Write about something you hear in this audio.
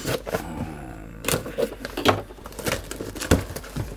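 Packing tape rips off cardboard.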